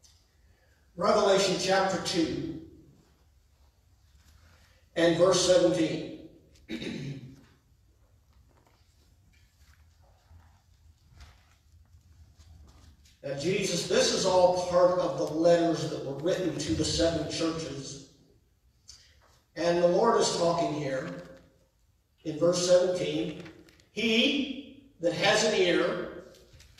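A man speaks calmly into a microphone in an echoing hall, pausing between phrases.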